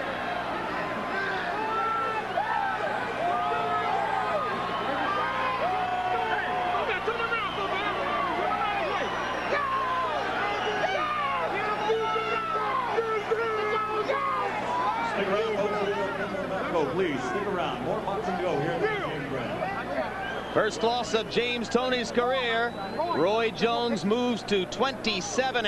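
A large crowd cheers and shouts loudly in an echoing arena.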